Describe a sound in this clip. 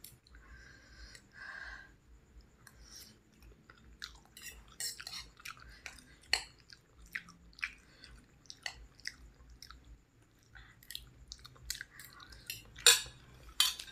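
A woman chews and slurps noodles close up.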